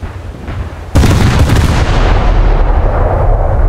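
Heavy naval guns boom in a loud blast.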